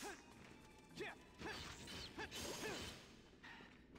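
A sword slashes with a sharp impact.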